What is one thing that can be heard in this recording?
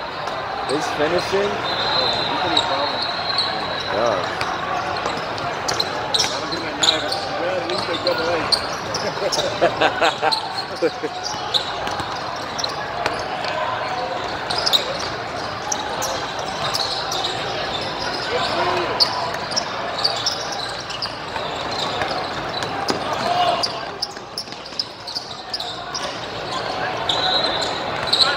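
A crowd of players and onlookers chatters and calls out in the background.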